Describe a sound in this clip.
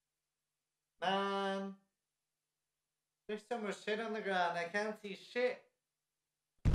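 A young man speaks expressively and up close into a microphone.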